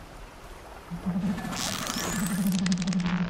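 A bowstring creaks as it is drawn.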